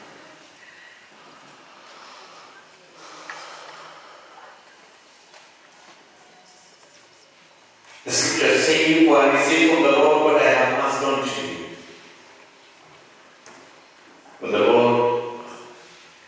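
A middle-aged man speaks calmly into a microphone in an echoing hall.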